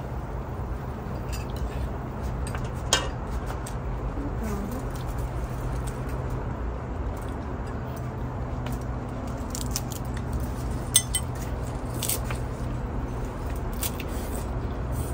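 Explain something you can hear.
Chopsticks and utensils clink against bowls and a pot.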